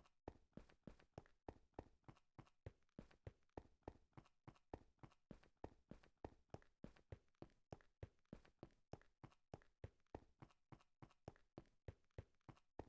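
Quick footsteps thud steadily on stone.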